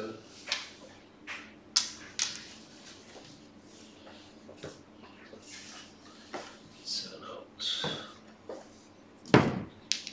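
A wooden stick scrapes and taps across a felt table.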